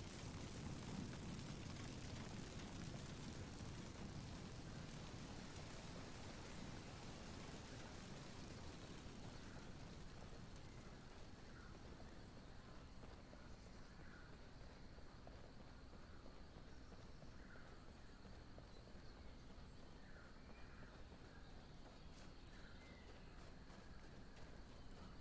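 Footsteps run over dirt and snow.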